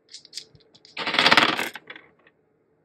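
Dice rattle together in a hand.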